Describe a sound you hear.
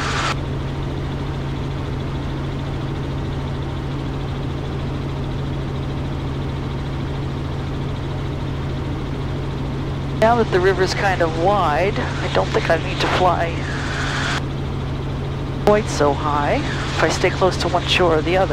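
A helicopter engine and rotor drone steadily throughout.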